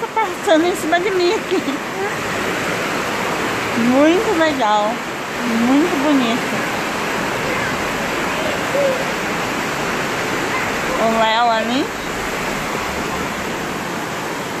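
A stream rushes and splashes over rocks nearby.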